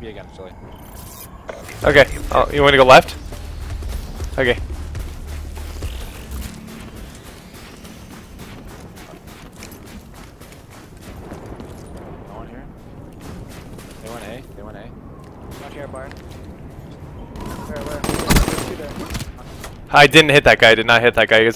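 Gunshots crack in quick bursts from a video game.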